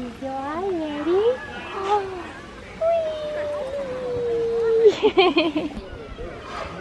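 A young woman talks to a baby in a cheerful sing-song voice, close by.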